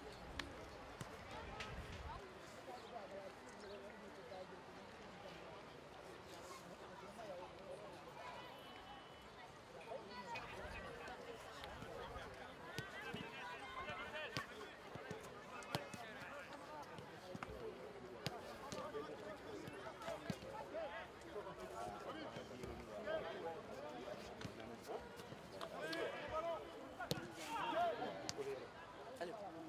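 Footballs are kicked back and forth with dull thuds.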